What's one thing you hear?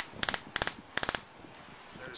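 An albatross clacks its bill sharply several times.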